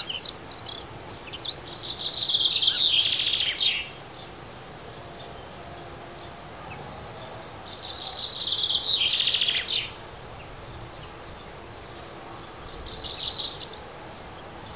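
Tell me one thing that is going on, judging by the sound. Small birds chirp and trill in loud bursts close by.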